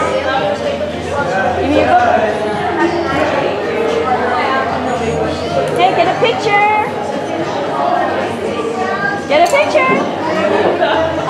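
Young children talk and babble nearby.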